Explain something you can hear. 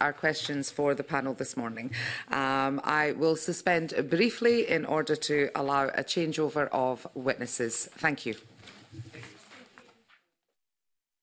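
A middle-aged woman speaks steadily into a microphone.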